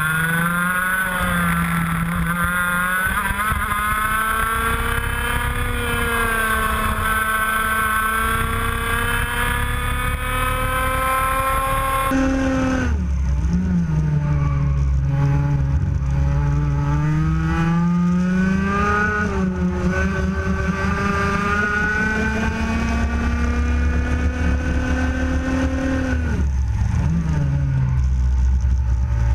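A kart engine buzzes loudly up close, its pitch rising and falling with the throttle.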